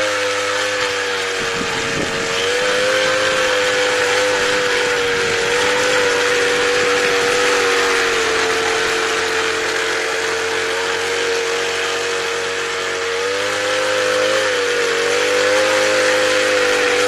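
Tines of a garden tiller scrape and churn through dry soil.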